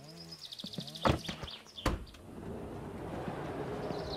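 A van door clunks.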